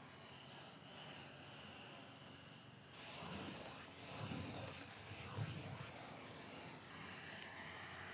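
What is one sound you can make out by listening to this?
A sanding block scrapes along a wooden edge.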